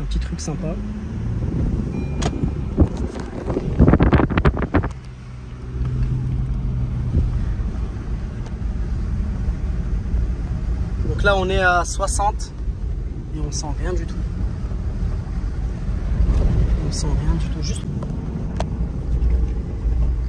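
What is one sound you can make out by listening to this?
A car engine hums and tyres rumble over sand.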